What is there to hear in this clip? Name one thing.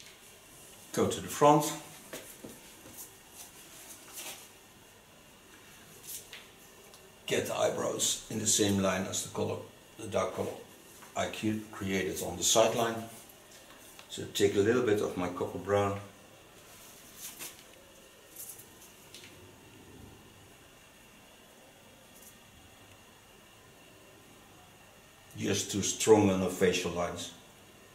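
A middle-aged man talks calmly nearby, pausing between phrases.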